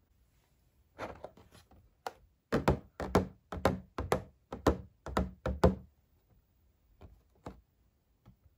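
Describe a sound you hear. Fingers tap and crinkle stiff plastic packaging.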